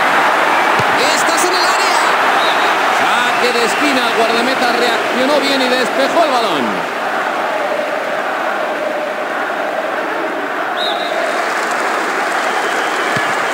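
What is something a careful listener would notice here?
A large crowd roars and cheers steadily in a stadium.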